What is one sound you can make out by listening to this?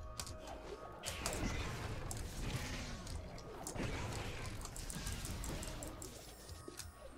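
Magical energy blasts zap and crackle in quick bursts.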